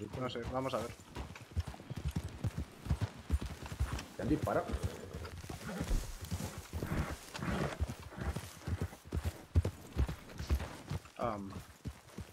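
Horses' hooves thud steadily on soft ground.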